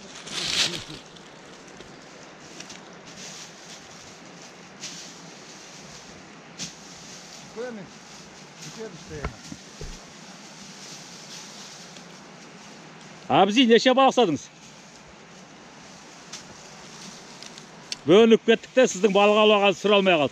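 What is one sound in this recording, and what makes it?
Dry leaves crunch and rustle underfoot as a man walks.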